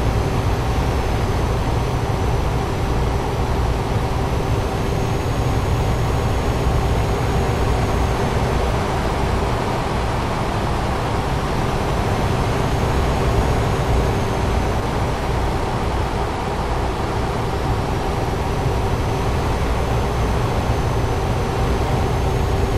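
Tyres roll on the road with a steady hum.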